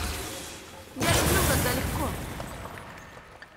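An axe flies back and thuds into a hand.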